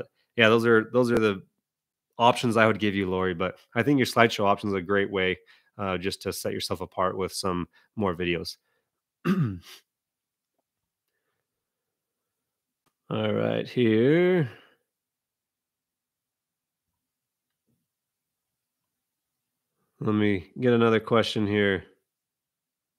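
A young man speaks calmly and closely into a microphone, pausing at times.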